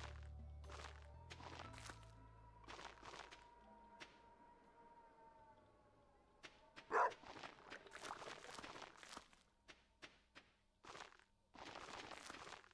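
Light footsteps patter on dirt.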